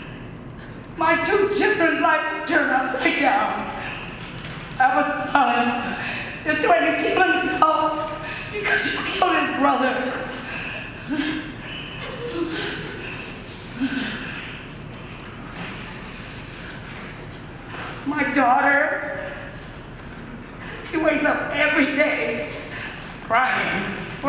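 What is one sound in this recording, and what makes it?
A woman speaks emotionally into a microphone, her voice breaking.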